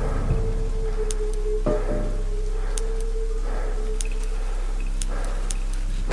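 Buttons click sharply, one after another.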